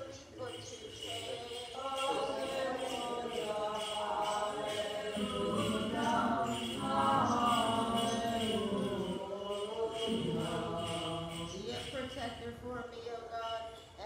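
An elderly man chants in a large echoing hall.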